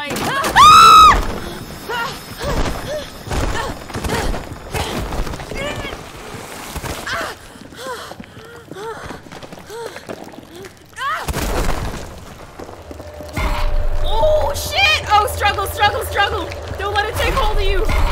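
A young woman talks and exclaims with animation into a close microphone.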